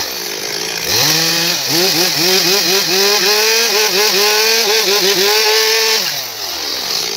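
A gasoline chainsaw revs under load as it cuts into a log.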